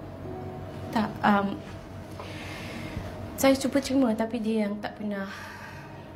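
A young woman speaks in short, strained phrases close by.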